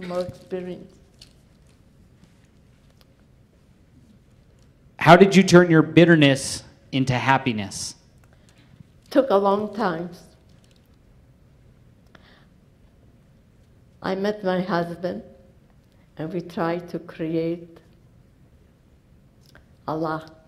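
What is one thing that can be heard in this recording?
An elderly woman speaks slowly and calmly into a microphone, with long pauses.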